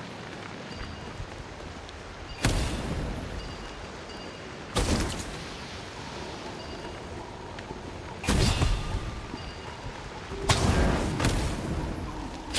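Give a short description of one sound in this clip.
Flames crackle and whoosh in bursts.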